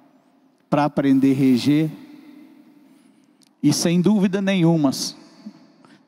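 A man speaks with emotion into a microphone, heard through a loudspeaker.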